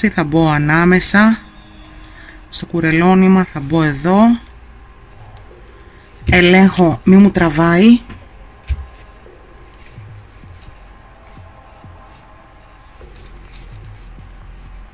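A crochet hook softly rustles and scrapes through yarn.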